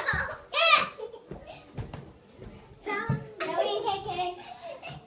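A young child squeals and babbles close by.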